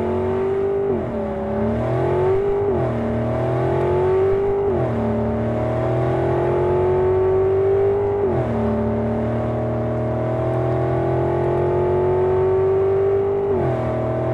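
A truck engine roars steadily, its pitch rising through each gear and dropping at every shift.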